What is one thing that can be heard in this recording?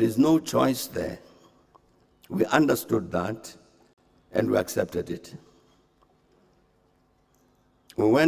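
An elderly man speaks calmly and formally into microphones, in short phrases with pauses.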